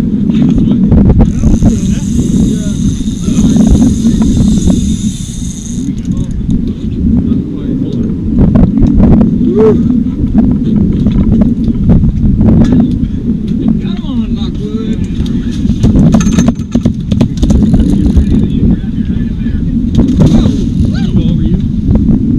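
A fishing reel clicks and whirs as line is reeled in.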